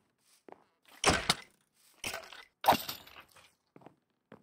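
A sword swings and strikes with sharp thuds.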